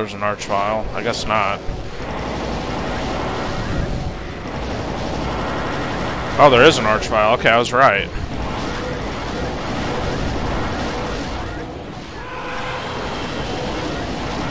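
A futuristic gun fires rapid buzzing shots.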